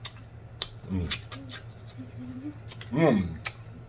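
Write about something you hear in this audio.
A man sucks and smacks his lips loudly close to a microphone.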